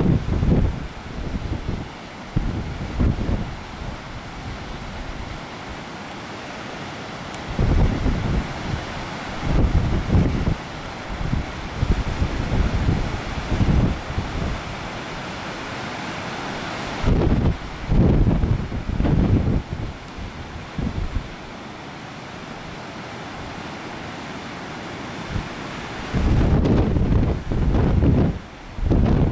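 Strong wind gusts buffet the microphone outdoors.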